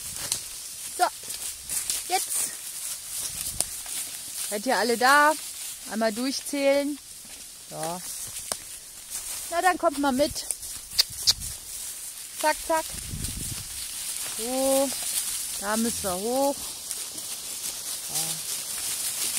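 Goats bleat loudly and repeatedly nearby.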